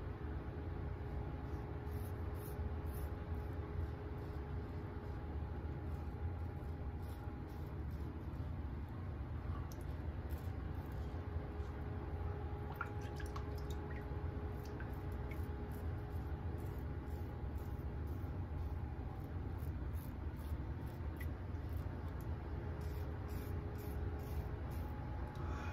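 A razor scrapes through stubble in short strokes, close by.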